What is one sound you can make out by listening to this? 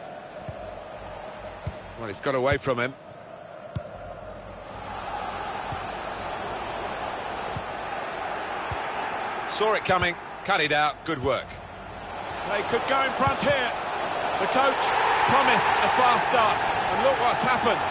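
A large stadium crowd roars steadily and grows louder.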